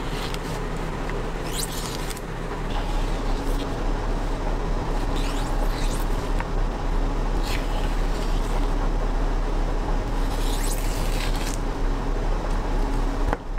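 Leafy stems rustle and tear as strings are stripped off.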